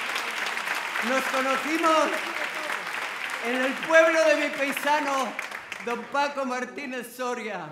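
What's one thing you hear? A woman sings into a microphone in a large hall.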